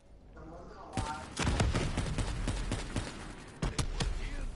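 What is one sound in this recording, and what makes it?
A rifle fires a series of sharp, booming shots.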